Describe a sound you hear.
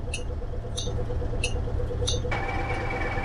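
A bus's warning chime beeps in quick repeats.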